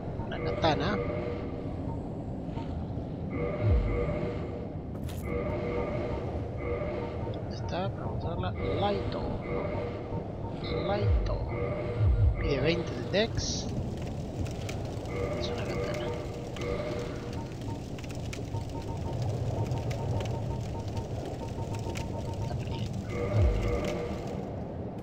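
Soft electronic menu beeps tick repeatedly.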